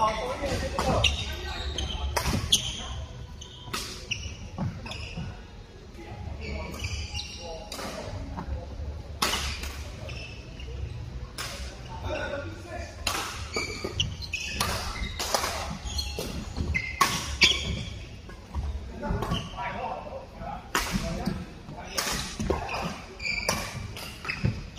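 Badminton rackets sharply smack a shuttlecock back and forth in an echoing hall.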